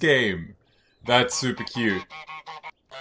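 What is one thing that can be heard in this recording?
A goose honks loudly.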